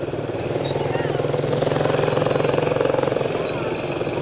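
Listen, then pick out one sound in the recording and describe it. A scooter engine roars loudly as it passes very close.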